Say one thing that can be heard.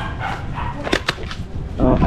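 A man taps a helmet with his fingers.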